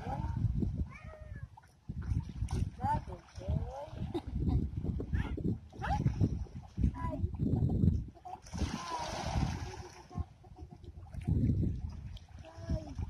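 Small waves lap gently at a stony shore.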